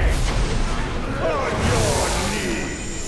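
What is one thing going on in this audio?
Magic blasts and weapons clash loudly in a fight.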